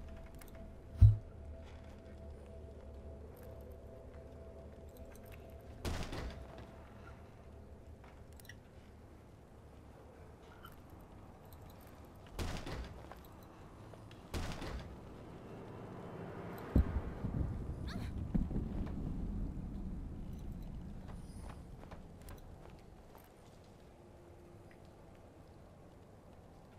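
Footsteps shuffle softly across a floor.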